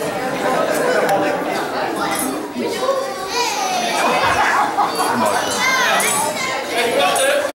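A crowd of children chatters and calls out excitedly in an echoing hall.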